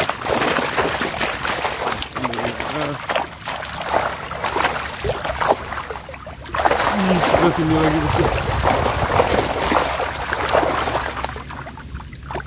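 Water splashes and churns as a trap is lifted.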